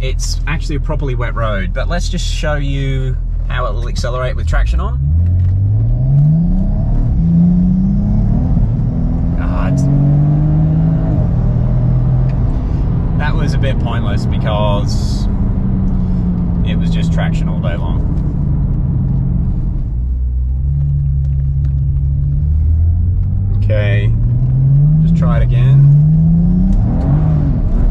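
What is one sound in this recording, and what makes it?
A car engine revs up and down through the gears, rumbling loudly.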